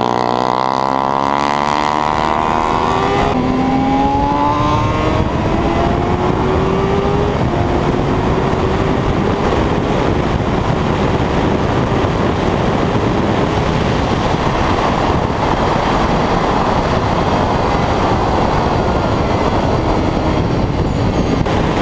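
A motorcycle engine revs high and shifts gears as it speeds along.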